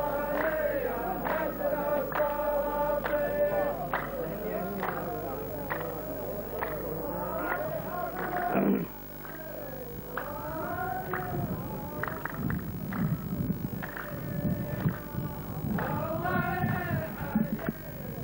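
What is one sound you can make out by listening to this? A group of men clap their hands in rhythm.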